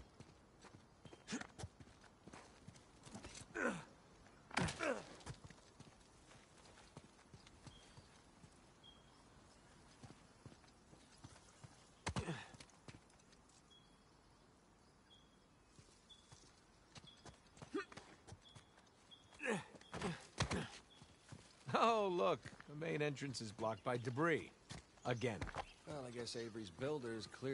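Footsteps crunch on stone and dirt.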